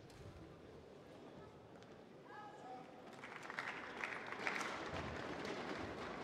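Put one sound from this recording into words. Shuttlecock hits ring out from rackets in a large echoing hall.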